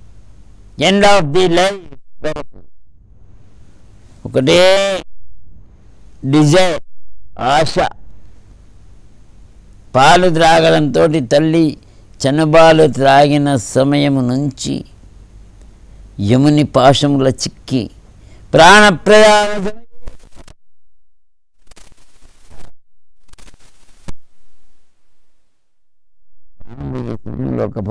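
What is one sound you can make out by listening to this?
An elderly man sings slowly in long, wavering notes, heard close through a microphone.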